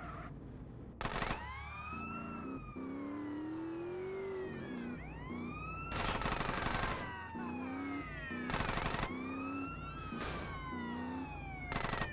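A gun fires rapid bursts of shots.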